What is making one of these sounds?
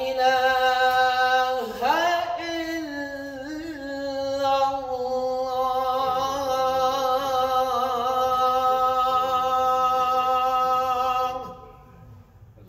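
An elderly man chants loudly in a long, melodic call through a microphone, echoing in a large hall.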